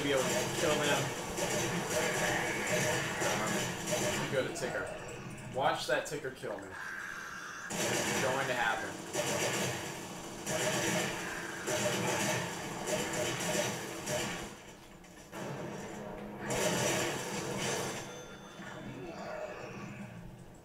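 Rapid gunfire rattles in bursts from a television's speakers.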